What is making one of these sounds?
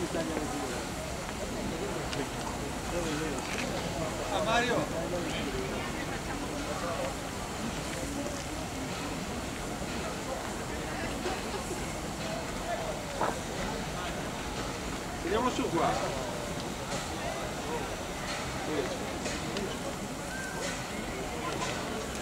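A steam locomotive chuffs and hisses steam as it rolls slowly forward.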